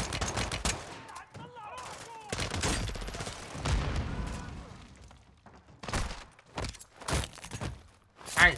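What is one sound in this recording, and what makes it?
Rapid gunfire rattles in sharp bursts.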